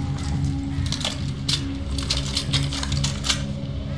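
A rifle clicks and rattles as it is picked up.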